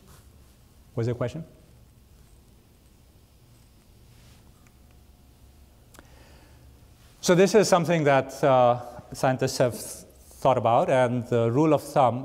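A man lectures with animation through a microphone in a large hall.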